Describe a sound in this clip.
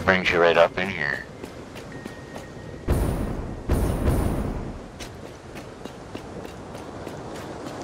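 Footsteps crunch steadily on hard rocky ground.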